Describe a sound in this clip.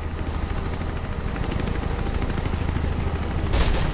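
A helicopter's rotor whirs overhead with a steady low hum.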